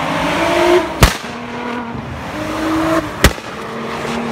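A car exhaust pops loudly.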